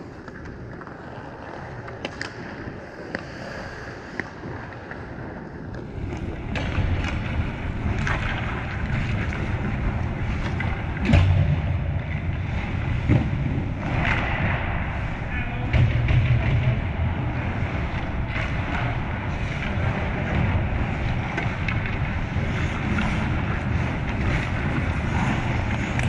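Ice skates scrape across the rink in a large echoing arena.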